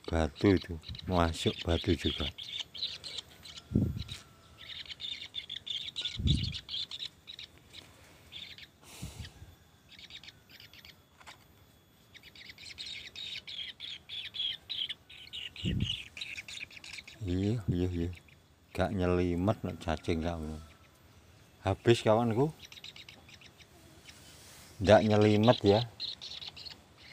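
A bird chirps and trills rapidly close by.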